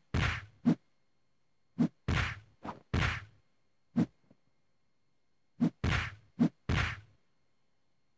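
Whooshing swipes cut through the air.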